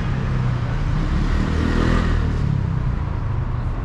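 A motor scooter hums past.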